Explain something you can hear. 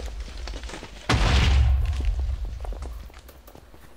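A sword swings and strikes in a game fight.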